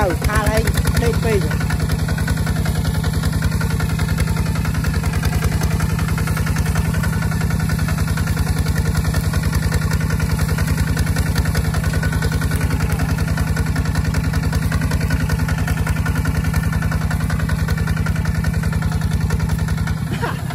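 A plough scrapes and turns dry soil.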